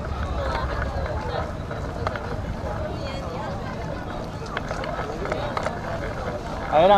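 Children and adults chatter nearby outdoors.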